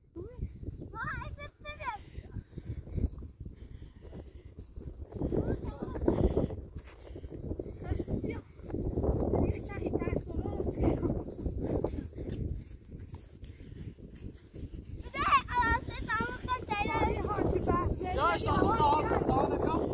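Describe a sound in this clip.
Young children shout and squeal with excitement.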